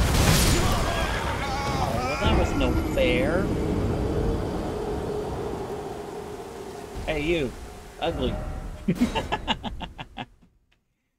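A huge creature roars and groans.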